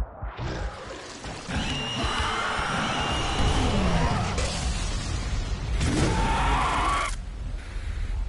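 A monster growls and roars close by.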